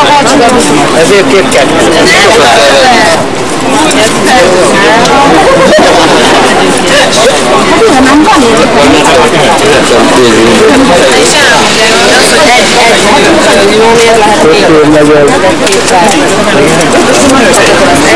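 Outdoor crowd chatter murmurs all around.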